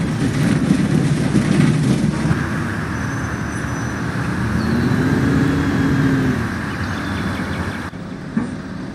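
A bus engine rumbles and hums as the bus drives along.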